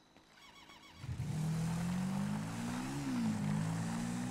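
A quad bike engine starts up and revs as it drives off.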